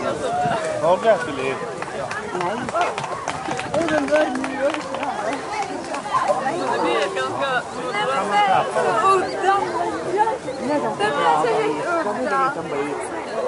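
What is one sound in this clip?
A crowd of people talks and cheers excitedly outdoors.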